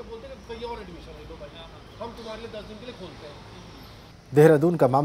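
A man speaks calmly outdoors, close by.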